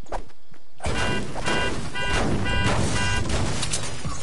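A car alarm beeps in quick repeated tones.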